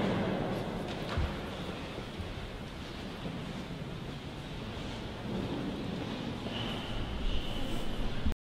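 Footsteps echo softly in a large, reverberant hall.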